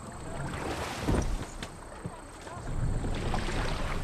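Oars splash rhythmically in the water.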